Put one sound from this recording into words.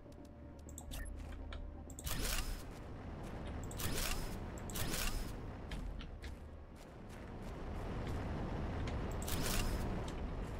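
Mining machines drill with whirring, crackling bursts.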